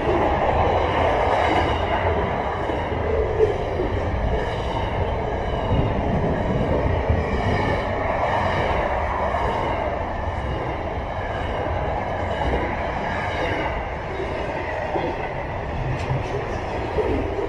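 A long freight train rumbles and clatters past close by.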